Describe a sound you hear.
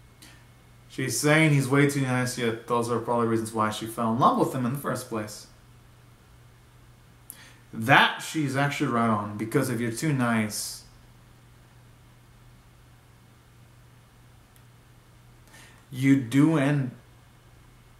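A young man speaks close to the microphone with animation, in short bursts with pauses.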